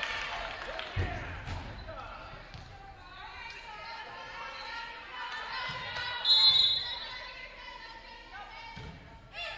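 A volleyball is struck with sharp slaps that echo in a large hall.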